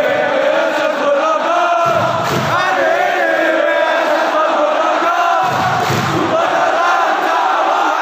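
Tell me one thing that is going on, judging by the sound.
A large stadium crowd chants and sings loudly in unison outdoors.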